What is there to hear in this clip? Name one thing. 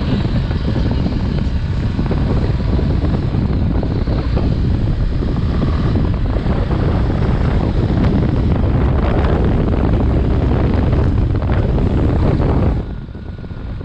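Wind rushes loudly against the rider and drops off near the end.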